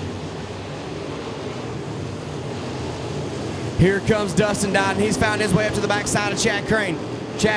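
Race car engines roar steadily as cars speed around a dirt track.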